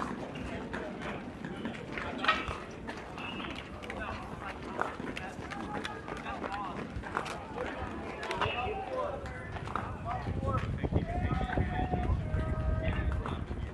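Young players shout and call out across an open field.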